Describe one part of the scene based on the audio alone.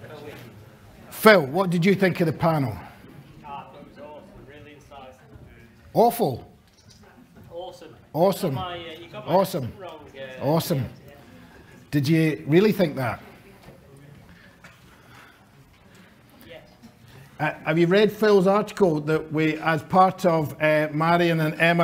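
A man speaks calmly into a microphone in a room, with pauses between phrases.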